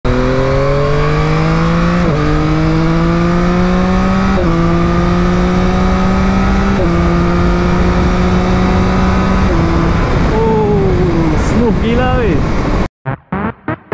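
A motorcycle engine hums steadily, rising in pitch as it speeds up and dropping briefly with each gear change.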